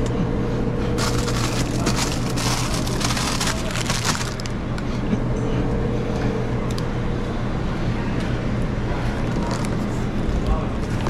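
A plastic wrapper crinkles in hands.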